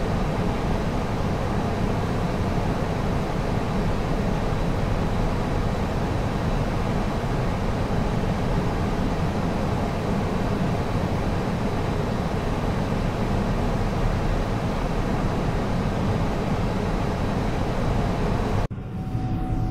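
Airflow and the engines of an Airbus A320 roar steadily in the cockpit.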